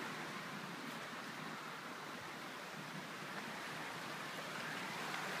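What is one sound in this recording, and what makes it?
A fast river rushes steadily over stones nearby.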